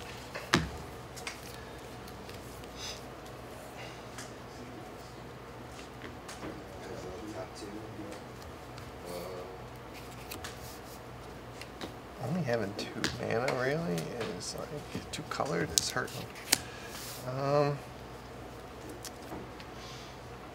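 Cards riffle and click in a player's hands.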